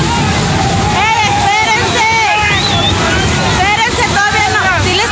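Women shout excitedly nearby.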